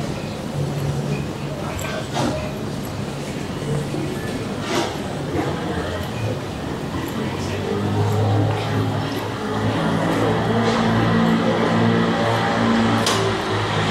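A quiet street murmurs outdoors.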